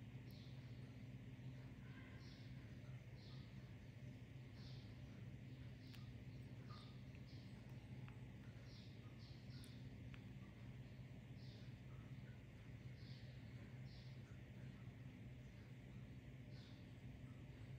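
A baby monkey gives soft, high squeaks again and again.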